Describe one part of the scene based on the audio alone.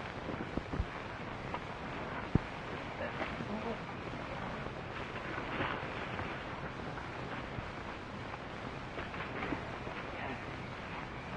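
Men murmur and call out in a crowd outdoors.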